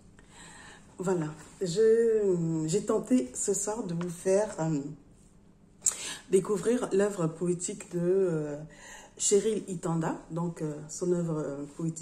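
A woman speaks with animation, close to the microphone.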